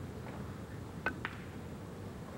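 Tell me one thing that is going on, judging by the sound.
A cue tip strikes a billiard ball with a sharp click.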